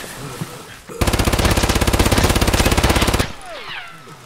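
A rifle fires a long rapid burst.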